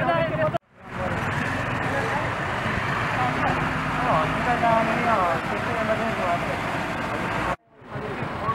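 Motorcycle engines idle nearby.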